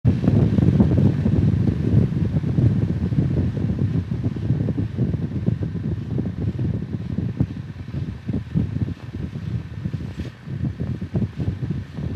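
A motorcycle engine hums steadily while cruising.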